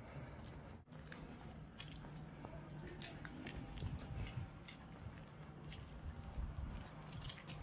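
Footsteps tread on cobblestones outdoors.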